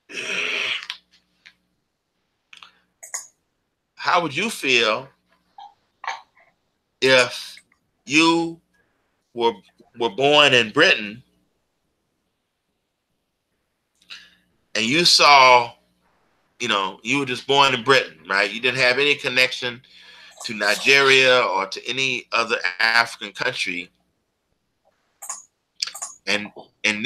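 An older man speaks calmly over an online call, in bursts with pauses.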